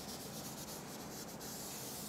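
Chalk scratches on a blackboard.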